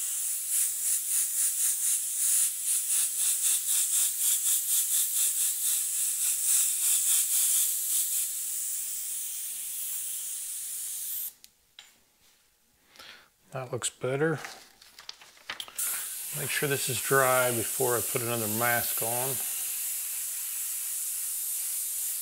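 An airbrush hisses steadily as it sprays paint.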